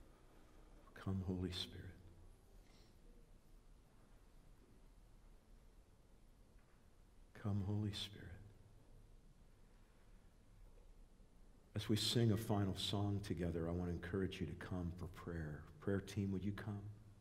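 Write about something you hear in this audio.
An older man speaks calmly into a microphone, with long pauses.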